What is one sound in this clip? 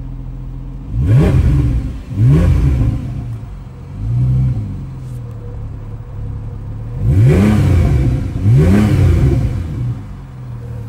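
A sports car engine revs sharply several times with a deep roar.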